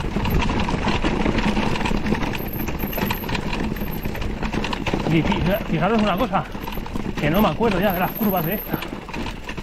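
A mountain bike's frame and chain rattle on a rough descent.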